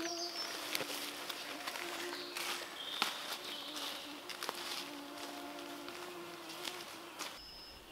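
Footsteps swish through tall grass and fade into the distance.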